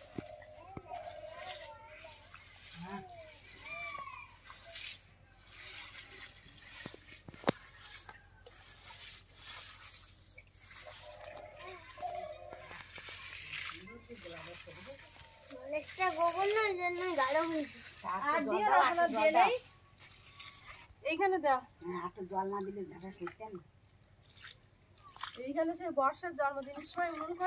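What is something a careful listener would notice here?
A broom sweeps scratchily over a sandy ground.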